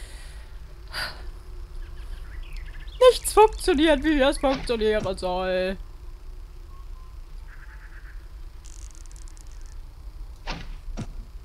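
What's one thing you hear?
An arrow is loosed from a bow with a sharp twang.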